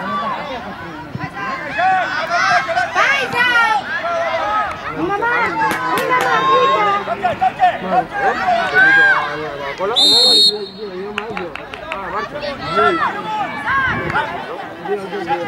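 Children shout excitedly across an outdoor pitch.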